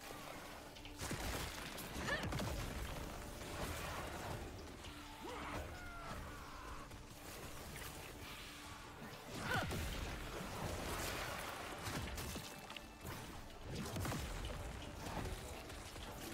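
Magic blasts and explosions boom and crackle in quick bursts.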